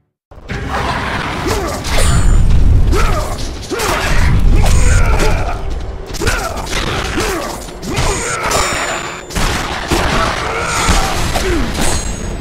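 Blades swish and slash through the air again and again.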